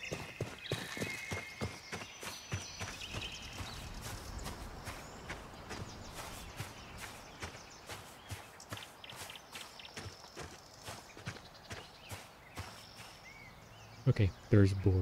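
Footsteps swish quickly through grass.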